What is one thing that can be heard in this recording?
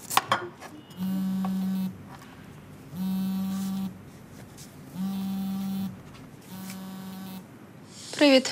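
A phone's ringing tone repeats through a handset.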